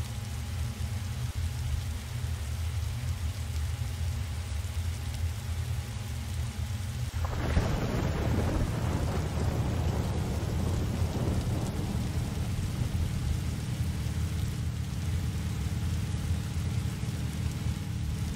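A jet engine hums low and steady, then grows louder with a rushing roar.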